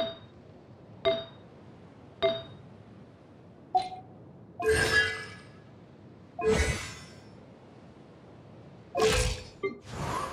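Short interface chimes and whooshes sound as menus switch.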